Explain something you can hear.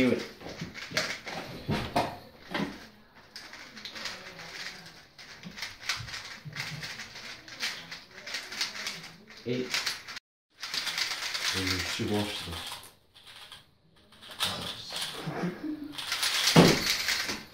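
Puzzle cubes click and rattle as they are turned quickly.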